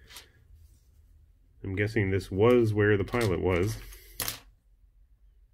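Small plastic parts click and rattle softly in someone's hands.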